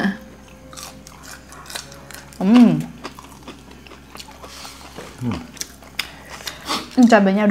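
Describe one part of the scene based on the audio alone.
Crispy food crunches as it is bitten.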